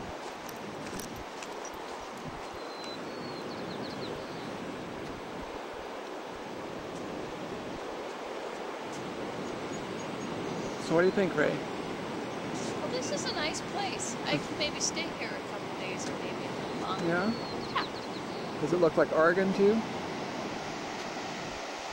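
Waves wash onto a beach in the distance.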